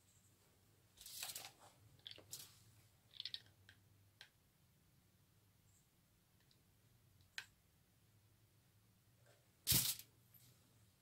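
Cloth rustles softly as it is handled.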